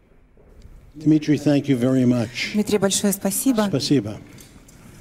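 An elderly man speaks calmly into a microphone, heard through loudspeakers in a large room.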